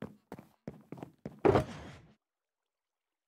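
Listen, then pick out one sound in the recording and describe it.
A box creaks open.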